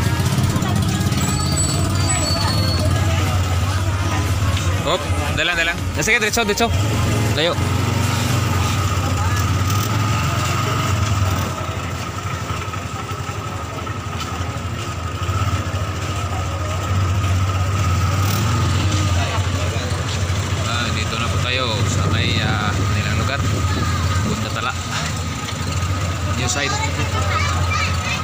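A motorcycle engine runs close by with a low, steady rumble.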